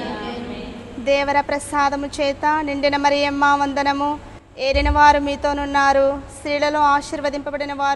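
Women sing a hymn together, close and clear.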